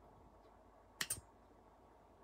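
A metal part on a rifle clicks sharply once.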